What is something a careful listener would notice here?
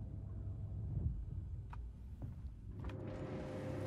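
A heavy sliding door opens with a low mechanical rumble.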